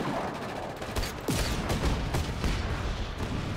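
A large explosion booms and roars.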